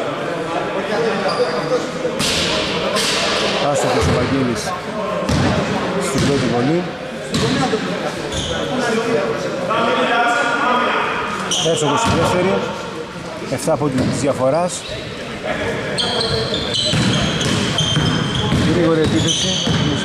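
Players shout and call to each other in an echoing hall.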